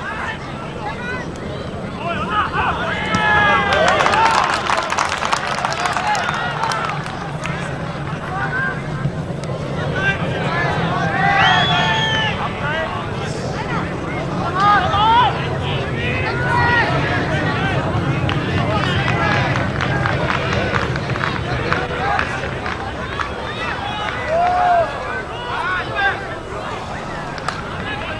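A large crowd of spectators cheers and shouts outdoors.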